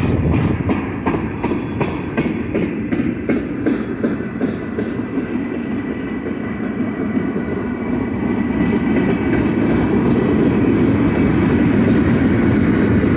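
A freight train rumbles steadily past nearby.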